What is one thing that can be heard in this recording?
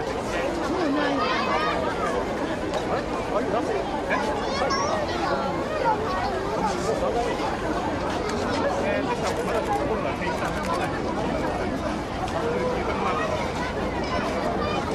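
A large crowd of men and women chatters outdoors all around.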